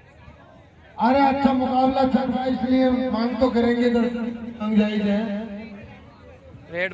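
A young man chants loudly and steadily.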